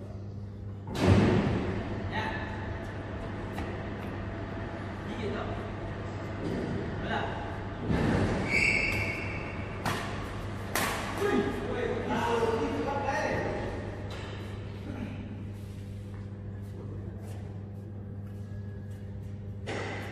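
Shuttlecocks are struck with rackets, the sharp hits echoing in a large hall.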